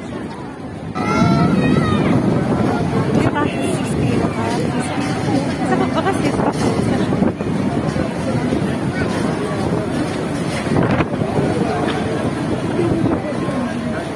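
Strong wind gusts roar outdoors.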